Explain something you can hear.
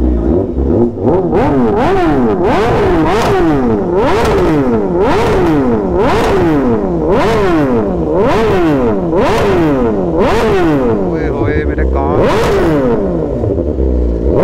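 A motorcycle engine revs hard up and down, over and over, loud and close.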